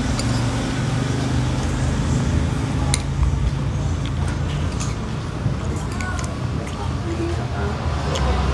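A metal spoon scrapes and clinks against a plate.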